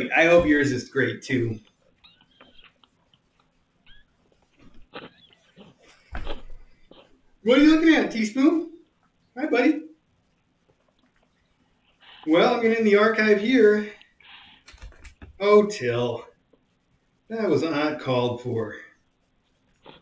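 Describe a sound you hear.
A man talks in short bursts, heard from across a room.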